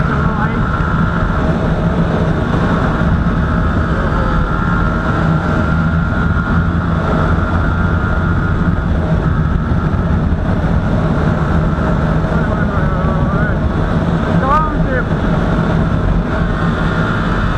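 A motorcycle engine roars steadily at speed.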